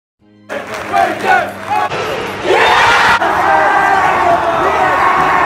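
Men close by shout and cheer excitedly.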